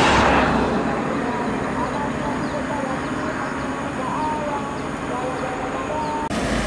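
A bus engine rumbles as it drives closer on the road.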